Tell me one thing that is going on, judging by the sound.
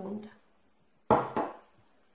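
A jar knocks down onto a wooden table.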